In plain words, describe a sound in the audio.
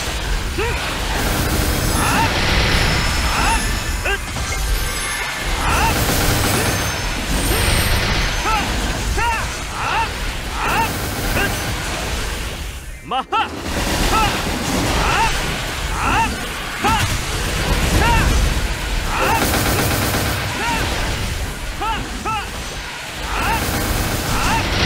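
Game skill effects burst and whoosh rapidly and without pause.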